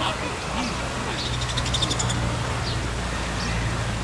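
A fountain splashes steadily into a pond.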